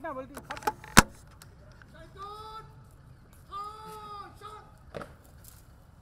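Boots stamp sharply on the ground.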